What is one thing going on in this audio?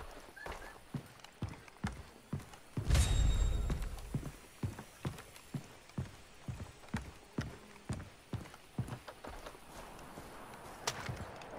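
Footsteps thud steadily on wooden planks.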